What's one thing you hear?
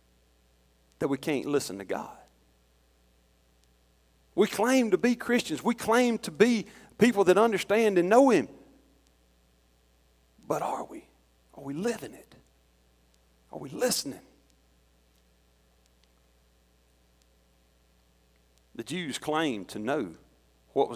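A middle-aged man preaches through a microphone in a large echoing hall, speaking with pauses.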